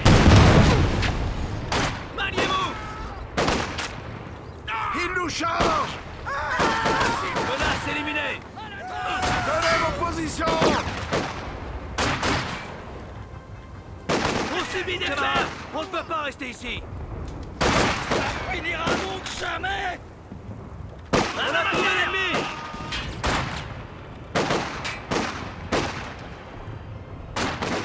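Explosions boom close by.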